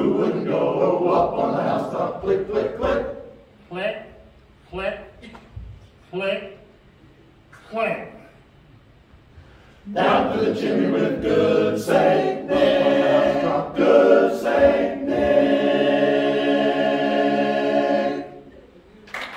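A men's choir sings together in close harmony, ending on a long held chord.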